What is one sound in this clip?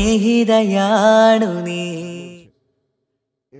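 A man sings a long, wavering note loudly into a microphone.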